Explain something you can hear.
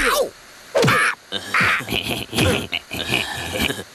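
A teenage boy laughs and talks back.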